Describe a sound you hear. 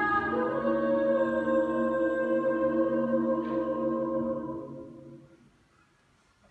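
A choir sings in harmony in an echoing hall, then falls silent.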